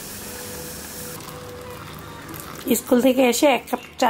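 Hot liquid pours from a pot into a glass.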